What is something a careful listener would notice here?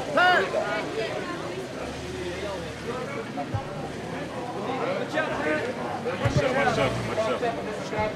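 A crowd of men and women shouts and chants outdoors nearby.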